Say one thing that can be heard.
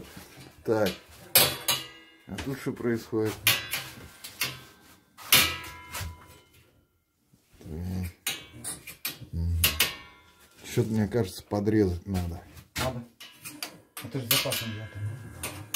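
Metal pipe parts clank and knock.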